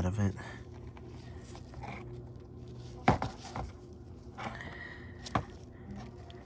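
Small rubber parts tap against a board.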